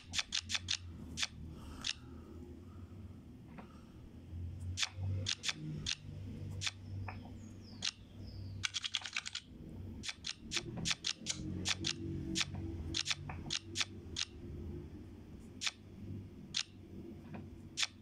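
Playing cards snap into place with short, sharp clicks.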